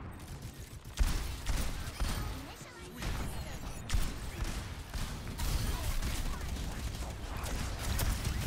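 Heavy guns fire in loud, quick bursts.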